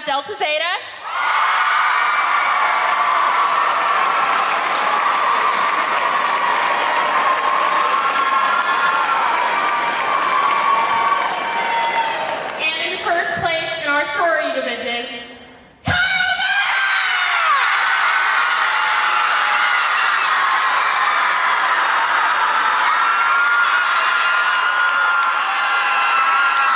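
Young women cheer and shriek.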